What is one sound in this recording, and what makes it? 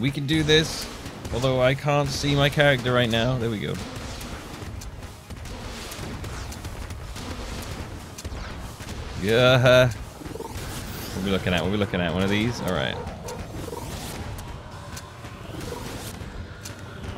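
Rapid electronic gunshots fire in quick bursts.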